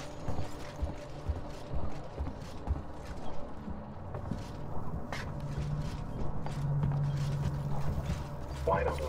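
Footsteps thud steadily on a metal floor.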